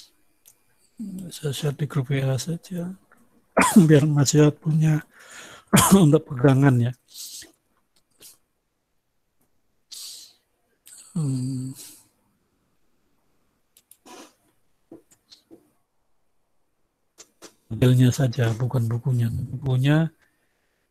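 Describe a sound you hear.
A man speaks calmly in bursts through an online call, with pauses between.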